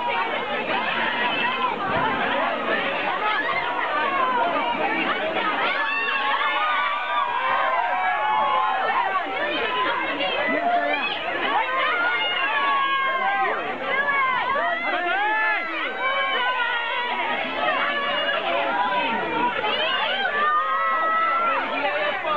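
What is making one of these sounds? Women shout and squeal with excitement close by.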